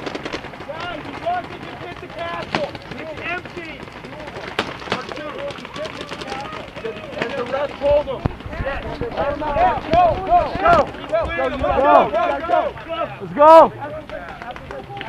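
Young men shout and call out nearby, outdoors.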